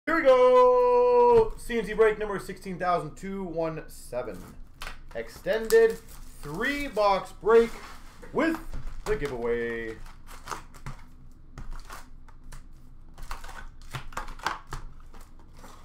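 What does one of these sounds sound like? Cardboard card boxes are picked up and set down with light knocks.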